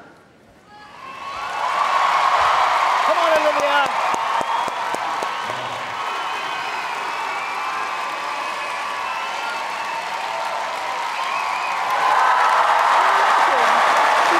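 A large crowd applauds and cheers loudly.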